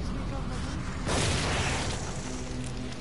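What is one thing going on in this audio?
A weapon fires with a sharp, loud burst.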